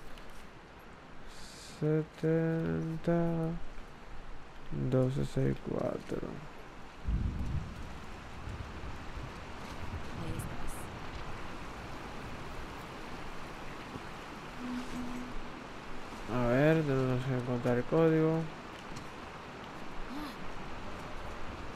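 Rain falls steadily outside.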